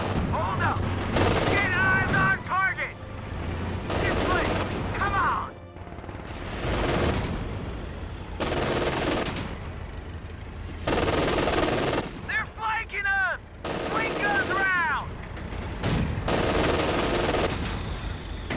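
Explosions boom and rumble.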